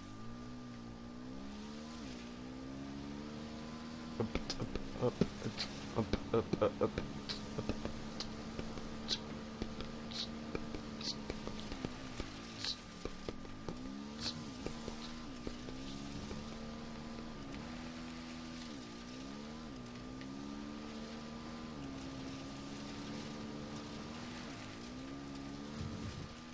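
A motorbike engine revs and drones steadily, rising and falling in pitch.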